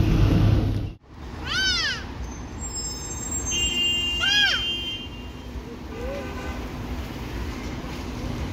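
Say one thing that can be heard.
Buses and cars rumble along a wet street outdoors.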